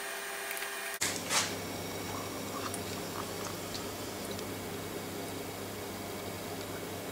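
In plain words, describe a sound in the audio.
Water trickles into a metal baking tray.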